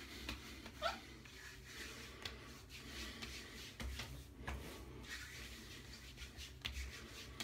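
Hands rub and pat on a bare scalp and neck, close by.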